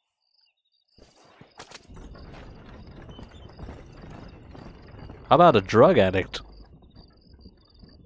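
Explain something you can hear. A horse-drawn wagon rolls away over a dirt road, its wheels rumbling and fading.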